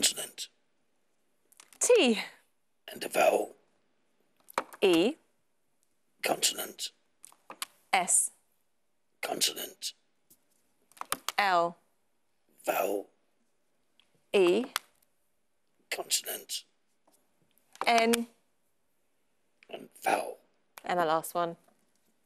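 A woman speaks calmly in short phrases through a microphone.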